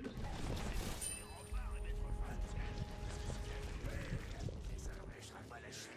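Footsteps run across soft ground.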